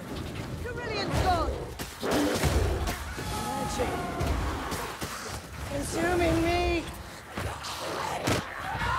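Blades hack and slash in a fierce melee fight.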